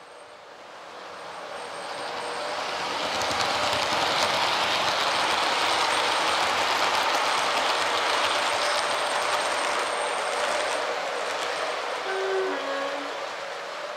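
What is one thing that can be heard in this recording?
A second model train rumbles past along the track.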